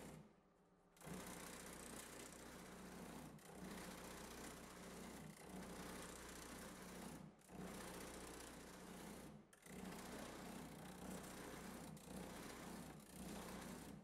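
A machine hums and whirs steadily.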